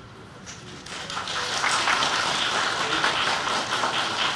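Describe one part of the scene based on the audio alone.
A crowd applauds outdoors.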